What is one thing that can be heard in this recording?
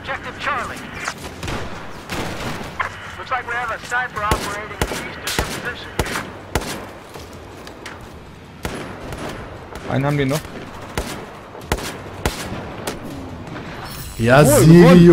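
Gunshots fire in quick bursts and single cracks.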